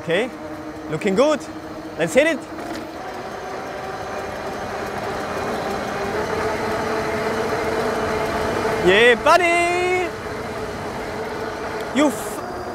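An electric motor whines steadily, rising in pitch as it speeds up.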